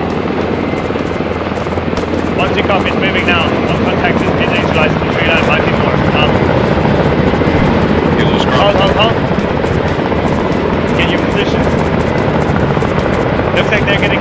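A helicopter's rotor thumps and drones steadily overhead.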